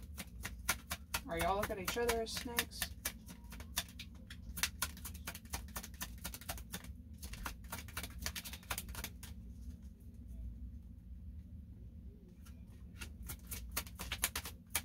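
Playing cards are shuffled with quick, crisp flicks and snaps.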